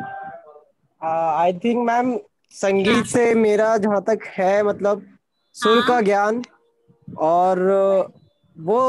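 A young man talks over an online call.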